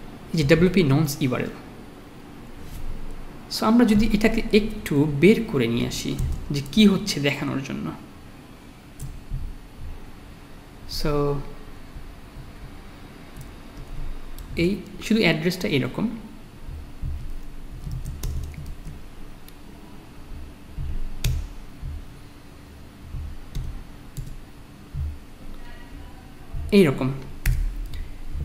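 A young man speaks calmly and closely into a microphone, with pauses.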